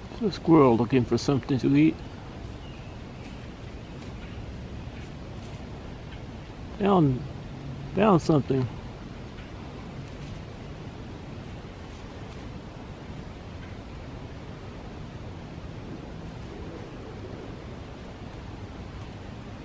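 A squirrel rustles softly through dry fallen leaves.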